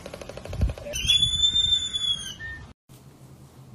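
Large seabirds call with high, wavering cries.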